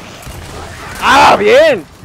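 A chainsaw revs and tears through flesh.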